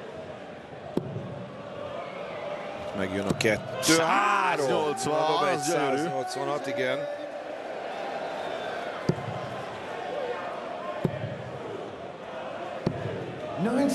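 Darts thud into a board.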